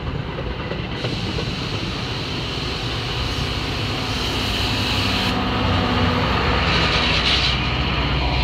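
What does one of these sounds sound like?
A diesel locomotive engine rumbles loudly as it passes close by.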